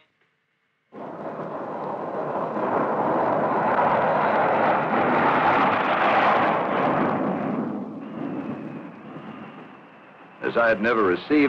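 A jet engine roars as a plane takes off and fades into the distance.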